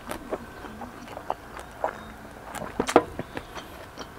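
A young man sips a drink and swallows.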